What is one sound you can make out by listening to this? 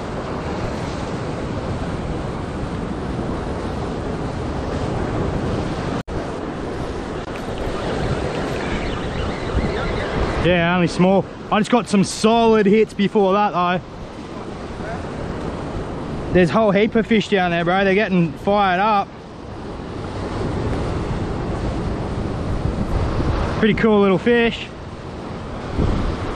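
Waves crash and surge against rocks close by, in a steady roar.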